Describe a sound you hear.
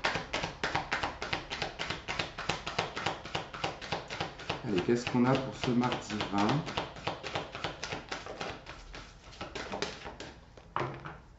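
Playing cards are shuffled with rapid riffling clicks.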